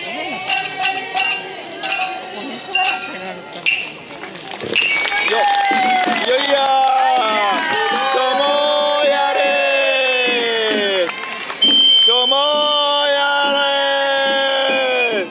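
Several shamisens are plucked in a lively rhythm outdoors.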